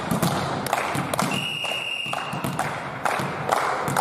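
A volleyball bounces on a wooden floor.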